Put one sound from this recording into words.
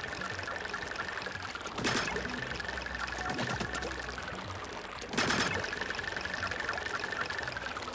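A small creature splashes and swishes through thick liquid.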